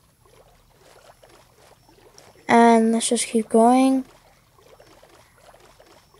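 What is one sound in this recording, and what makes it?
Water laps gently.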